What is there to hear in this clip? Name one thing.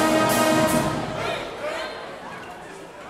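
A brass band blasts a loud chord that rings out and fades in a large echoing hall.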